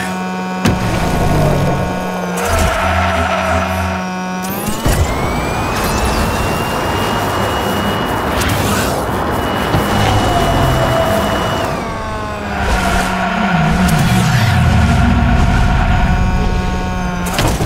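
A racing car engine whines and revs steadily.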